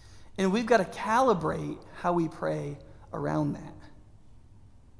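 A man speaks with animation into a microphone in a room with a slight echo.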